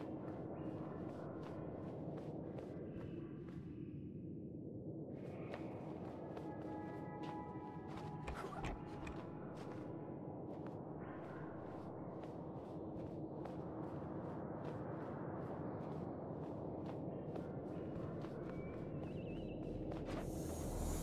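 Small footsteps patter quickly along a walkway.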